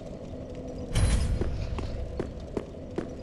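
A magical burst swells suddenly and fades.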